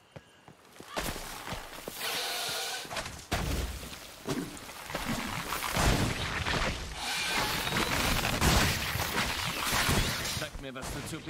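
A sword swishes and strikes in a loud fight.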